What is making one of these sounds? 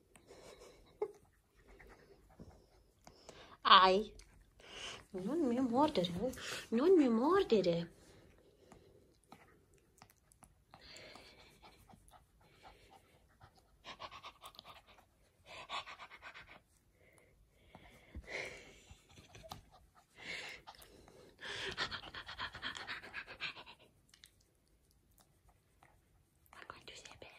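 A hand rubs through thick fur with a soft rustle.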